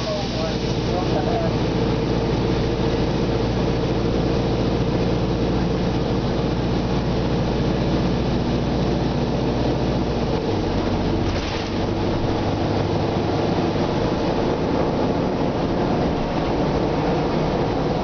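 A bus engine rumbles steadily inside the cabin.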